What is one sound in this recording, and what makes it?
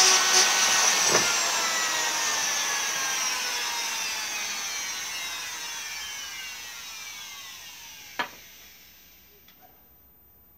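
A power drill spins a wooden rod with a high whine that winds down.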